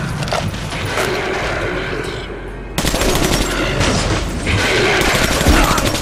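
Rifle shots crack loudly.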